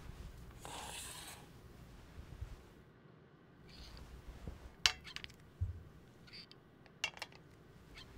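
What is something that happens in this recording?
A plastic film reel clicks and knocks as it is fitted onto a metal arm.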